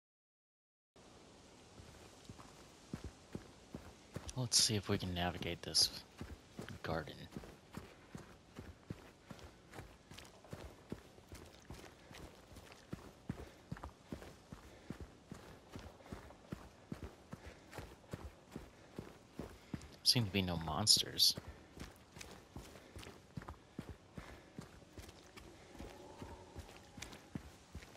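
Footsteps crunch steadily on a gritty path.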